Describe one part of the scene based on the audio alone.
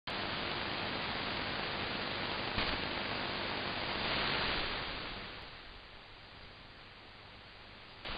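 Radio static hisses loudly through a receiver, then grows quieter.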